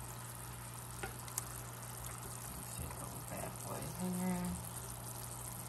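Metal tongs scrape and clink against the pan.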